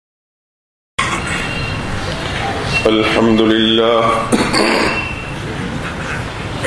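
An elderly man speaks steadily into a microphone, heard through loudspeakers in an echoing hall.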